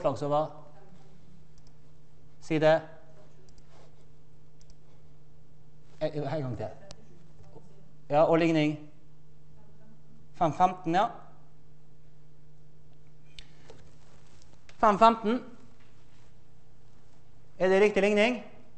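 A man lectures in short bursts in a large echoing hall.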